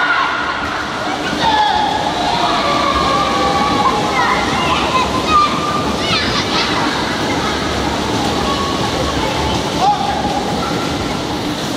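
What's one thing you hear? A man calls out loudly to the children.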